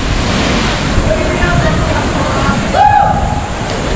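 A body splashes into the water below.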